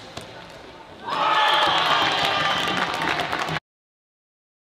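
A crowd cheers and applauds in a large echoing hall.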